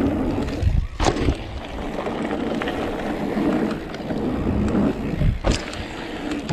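A bike rattles and clunks over bumps.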